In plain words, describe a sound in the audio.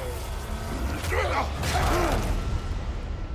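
A man grunts and strains.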